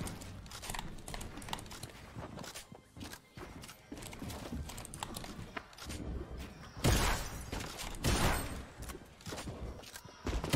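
Game building pieces clatter and thud into place.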